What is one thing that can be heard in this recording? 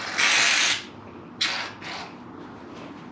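An aerosol can sprays with a sharp hiss in short bursts.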